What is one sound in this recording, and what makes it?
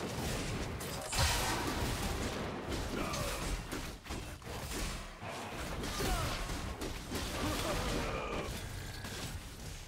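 Magic blasts whoosh and crash during a fight.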